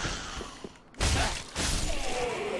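A sword clashes against a shield with a sharp metallic clang.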